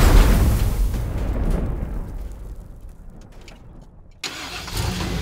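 A loud crash of vehicles colliding fades out.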